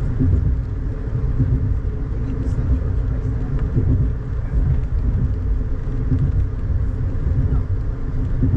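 Rain patters lightly on a car window.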